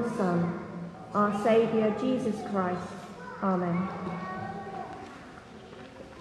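A woman reads aloud into a microphone in a large echoing hall.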